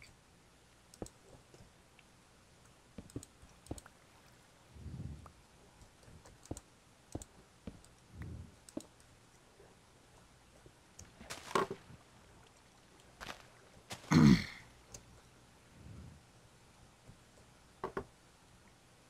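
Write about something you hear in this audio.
Blocks thud and click as they are placed and broken in a game.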